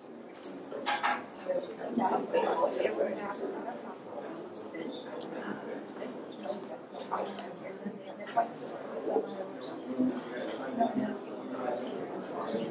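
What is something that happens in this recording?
A crowd of men and women chatter in a room nearby.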